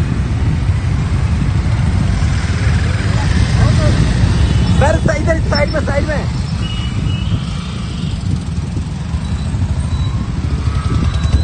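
Many motorcycle engines rumble steadily close by.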